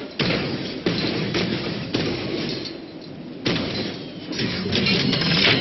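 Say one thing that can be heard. A heavy weapon fires in sudden, loud blasts.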